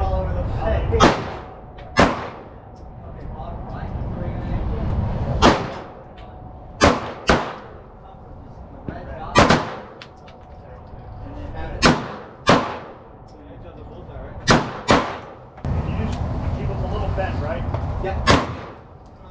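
Pistol shots ring out sharply, one at a time, outdoors.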